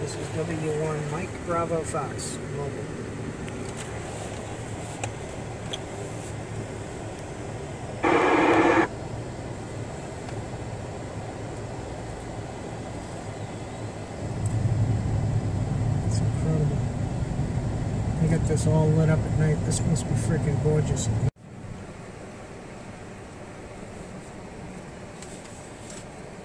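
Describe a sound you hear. Tyres rumble steadily on the road inside a moving car.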